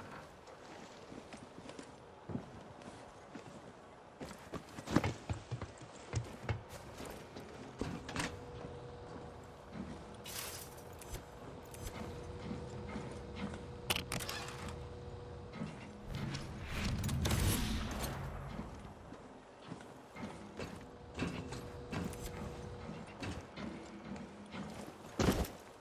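Footsteps clang on a metal grating floor.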